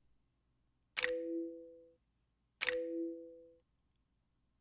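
A soft two-note chime sounds twice.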